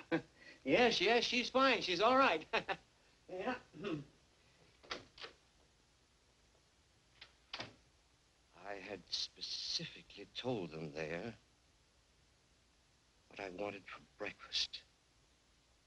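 A middle-aged man speaks with animation.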